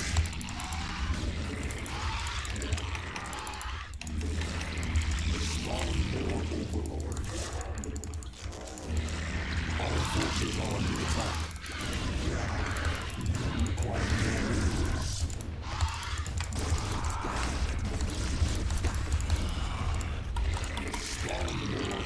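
Game battle effects crackle and clatter.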